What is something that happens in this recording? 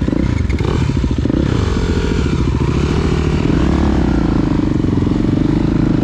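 Other dirt bike engines idle and putter nearby.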